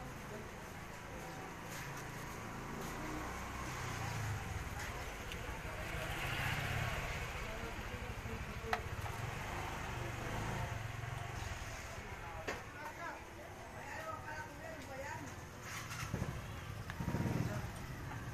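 Small metal parts click and clink.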